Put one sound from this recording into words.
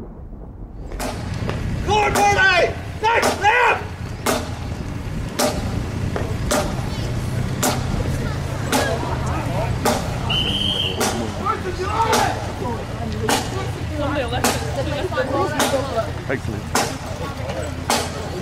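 A marching band beats drums in a steady rhythm outdoors.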